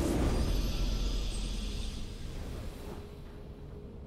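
A triumphant game fanfare swells loudly and fades away.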